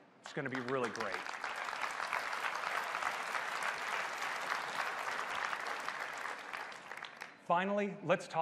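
A large audience applauds and cheers.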